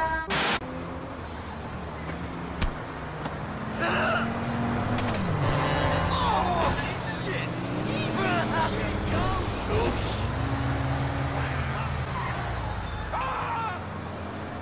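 A bus engine rumbles and revs up and down.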